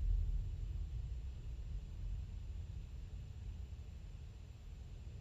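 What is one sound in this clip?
A spaceship engine hums with a deep, steady drone.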